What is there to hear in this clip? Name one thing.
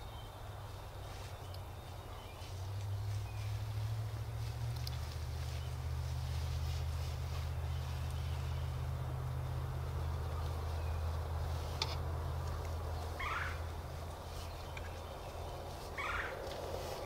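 Male turkeys drum with a deep, steady low hum.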